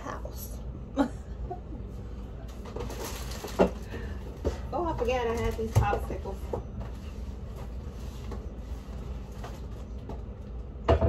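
Dishes clink and knock at a sink.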